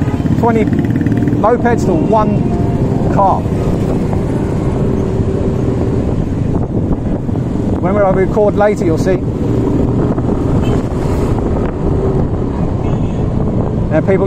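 A motor scooter engine hums steadily close by.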